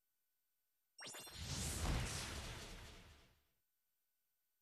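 A heavy blow lands with a loud rushing crash.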